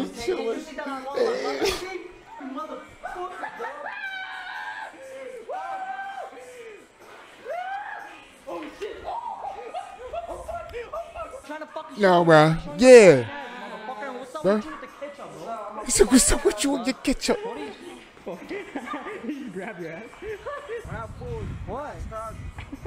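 A young man reacts loudly into a close microphone, shouting and exclaiming with excitement.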